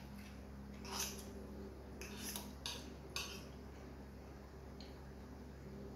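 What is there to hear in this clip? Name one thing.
A fork and knife scrape and clink against a plate.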